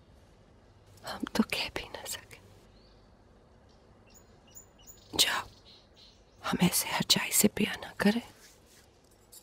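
A young woman speaks in a distressed, tearful voice close by.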